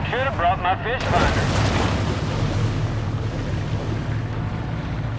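Water sloshes and splashes as a shark swims at the surface.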